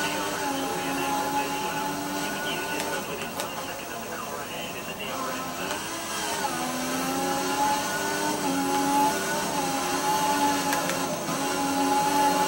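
A racing car engine whines at high revs, dropping in pitch as it slows and climbing again as it speeds up.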